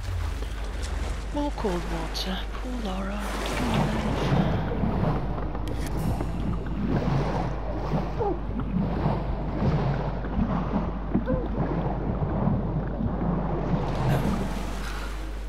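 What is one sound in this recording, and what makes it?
Water churns and swirls as a swimmer strokes through it.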